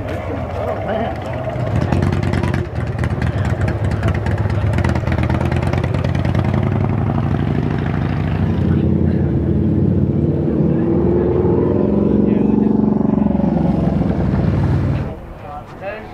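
Motorcycle engines rumble and roar nearby.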